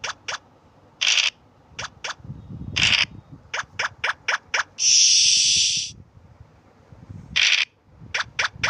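A die rattles briefly as it rolls, several times.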